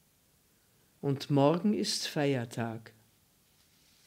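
An elderly woman reads aloud calmly into a close microphone.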